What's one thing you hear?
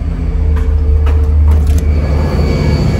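A door opens with a clunk.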